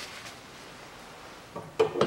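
Hands knock and rattle a plastic engine cover.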